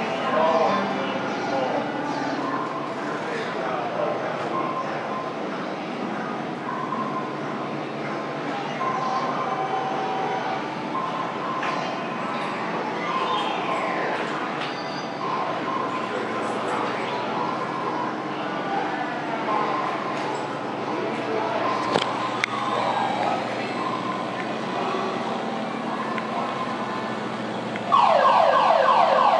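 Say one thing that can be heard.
Pinball machines chime, beep and play electronic jingles all around.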